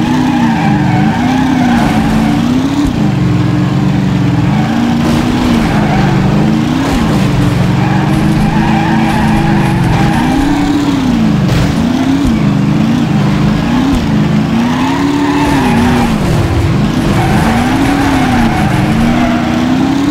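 Tyres squeal as a car slides through corners.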